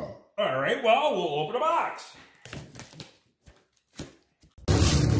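A cardboard box is shifted and bumped.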